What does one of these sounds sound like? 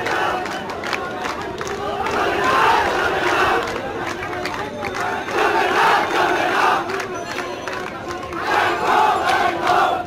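Many people talk at once nearby.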